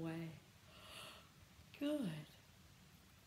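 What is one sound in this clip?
A woman lets out a loud, drawn-out cry.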